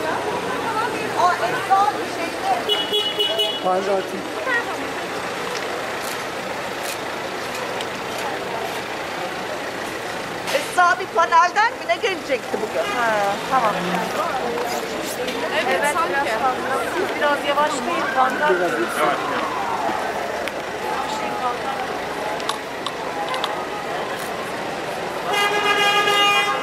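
A crowd of marchers chants and talks outdoors.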